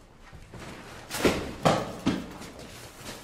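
Two men scuffle and thump against a wall.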